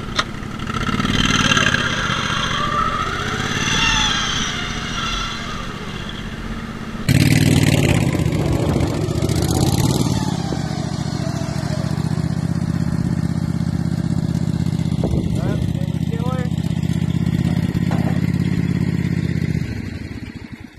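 A small engine rumbles steadily, then cuts out.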